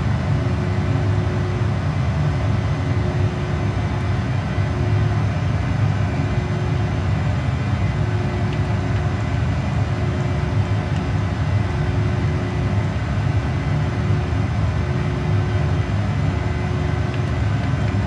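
Jet engines roar steadily in a cockpit.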